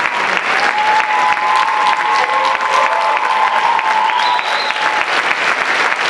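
People in an audience cheer and whistle.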